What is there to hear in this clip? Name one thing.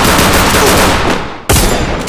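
A rifle fires a burst of shots.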